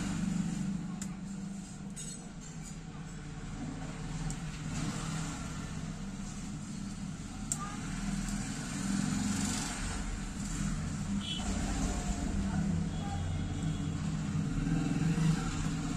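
A small metal tool clicks lightly against a phone's parts.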